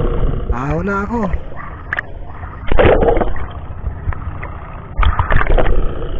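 Water churns and bubbles close by.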